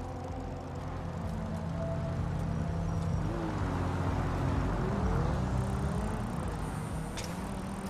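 A car engine hums and drones as a car passes close by.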